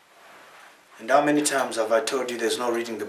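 A man speaks clearly nearby.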